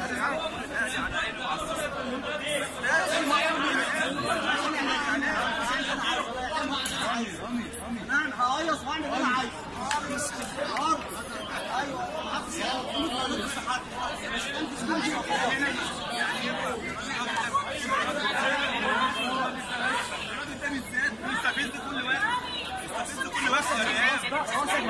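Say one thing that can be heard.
A crowd murmurs and chatters in an open stadium.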